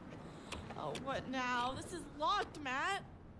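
A young woman cries out in distress nearby.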